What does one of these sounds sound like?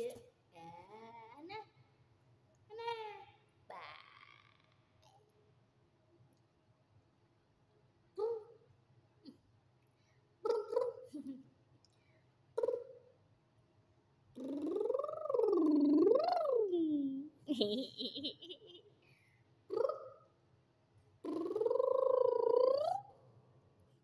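A young woman talks close by in a playful, sing-song voice.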